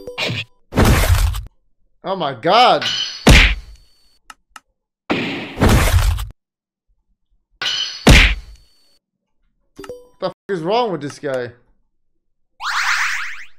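Retro handheld-style video game battle attack sound effects play in short bursts.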